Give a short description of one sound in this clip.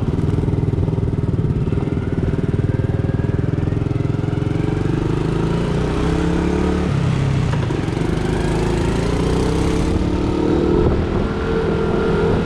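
A small scooter engine chugs at idle, then revs up and down as the scooter moves off.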